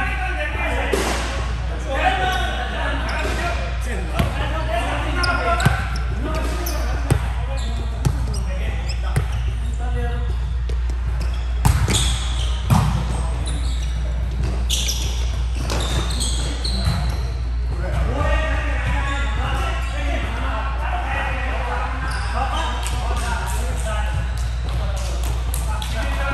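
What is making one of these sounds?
Men call out and talk in a large echoing gym.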